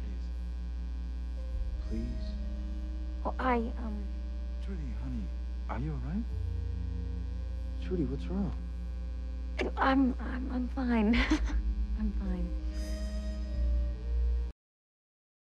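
A young woman speaks in a distressed, tearful voice close by.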